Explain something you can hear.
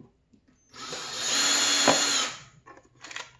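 A power drill whirs briefly.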